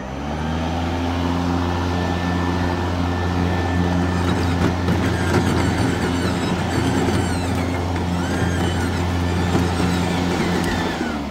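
An electric lawn mower hums steadily up close.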